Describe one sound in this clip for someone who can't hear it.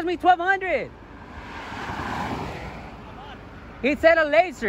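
A car drives past close by, its tyres hissing on the road.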